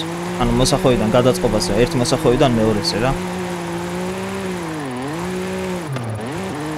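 A car engine drones steadily and dips in pitch now and then.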